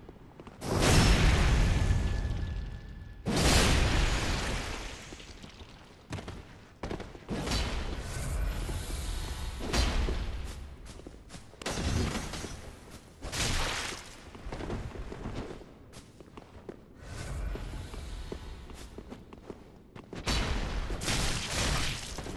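Swords clash and strike with sharp metallic hits.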